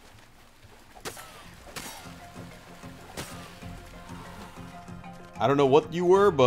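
A spear stabs into flesh with wet thuds.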